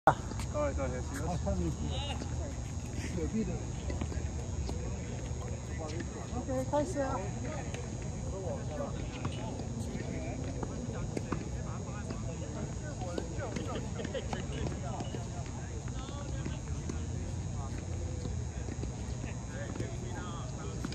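Tennis balls are struck by rackets with sharp pops.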